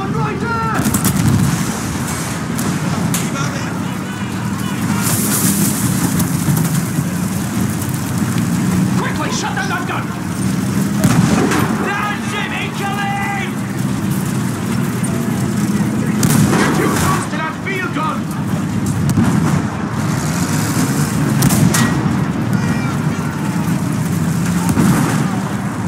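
A tank engine rumbles steadily throughout.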